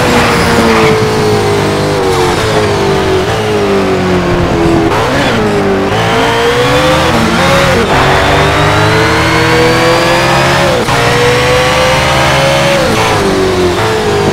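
A racing car engine roars loudly, rising in pitch as it speeds up and dropping sharply at each gear change.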